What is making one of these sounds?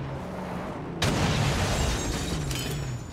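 An explosion bursts nearby.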